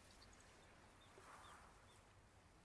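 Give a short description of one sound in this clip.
A fishing rod swishes through the air as the line is cast.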